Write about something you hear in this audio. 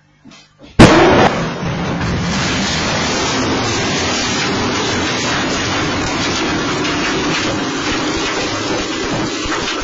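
Flames roar steadily.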